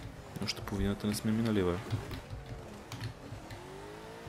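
Car tyres squeal on the road while sliding through a bend.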